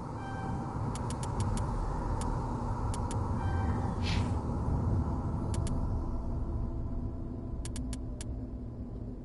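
Short soft electronic clicks tick as a menu selection moves.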